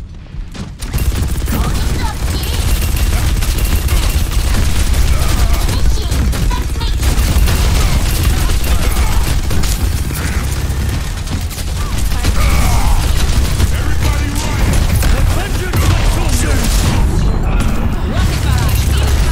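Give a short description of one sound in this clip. Heavy guns fire in rapid bursts.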